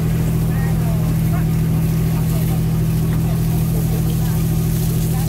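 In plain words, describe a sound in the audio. A boat engine hums steadily and low.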